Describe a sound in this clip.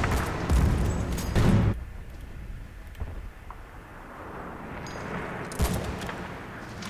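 A rifle shot booms loudly and echoes.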